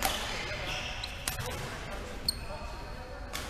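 Sneakers squeak on a floor.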